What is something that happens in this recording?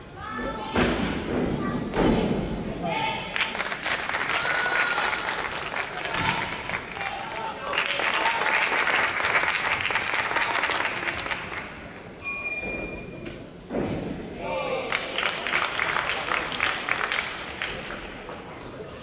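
A crowd cheers and applauds loudly in a large echoing hall, then quiets down.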